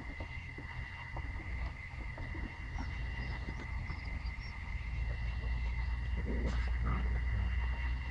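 A puppy tugs and chews on a leash.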